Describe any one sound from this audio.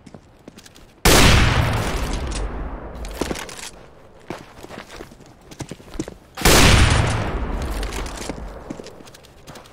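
A sniper rifle fires loud booming shots that echo away.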